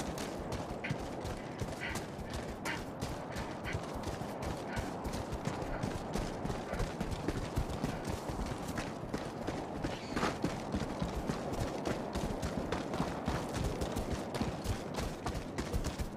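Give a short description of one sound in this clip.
Heavy boots run quickly over rough ground.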